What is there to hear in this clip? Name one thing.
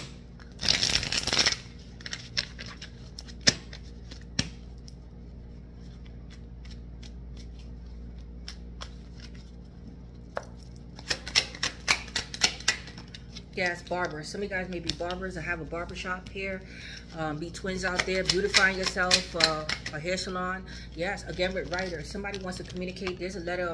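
Playing cards rustle and flick as they are shuffled.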